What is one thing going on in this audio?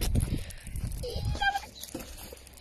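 A small dog whines close by.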